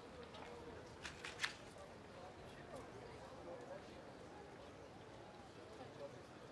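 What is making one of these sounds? A photograph rustles and crinkles in someone's hands.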